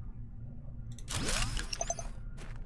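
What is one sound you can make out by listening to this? A shimmering sound effect from a video game plays as a structure materializes.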